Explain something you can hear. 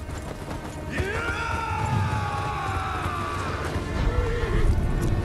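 Men shout a rallying cry.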